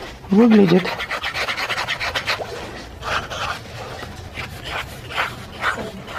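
A felt-tip marker scratches on paper.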